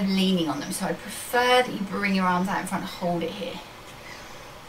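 A young woman speaks with animation, close by in a small room.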